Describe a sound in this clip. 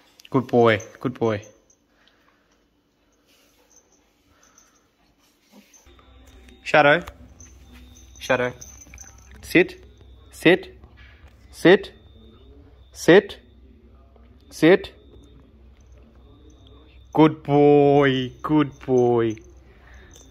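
A puppy yelps and whines in short, high cries.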